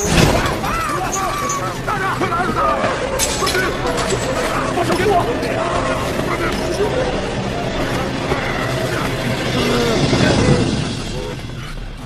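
A man shouts in distress, close by.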